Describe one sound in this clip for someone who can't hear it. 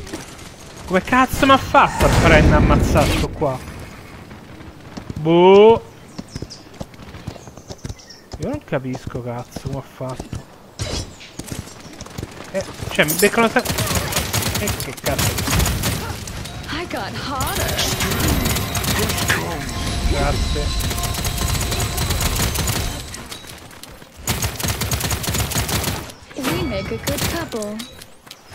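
Gunfire and blasts crackle loudly from a game in rapid bursts.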